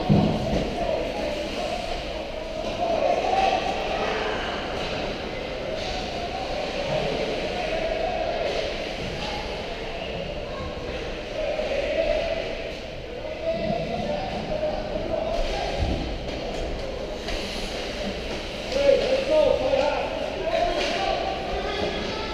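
Skate blades scrape and hiss across ice in a large echoing rink.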